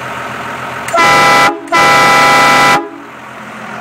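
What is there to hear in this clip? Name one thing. Loud truck air horns blast twice in short bursts.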